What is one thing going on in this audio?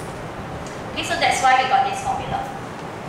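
A young woman speaks clearly into a microphone nearby.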